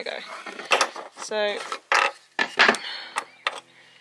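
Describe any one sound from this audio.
A plastic panel knocks and scrapes as it is pulled loose.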